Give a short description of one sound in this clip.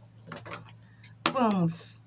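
Scissors snip a thread.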